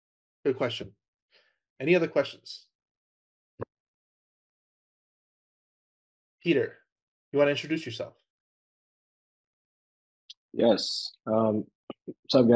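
A man speaks into a microphone in short bursts, with long pauses between them.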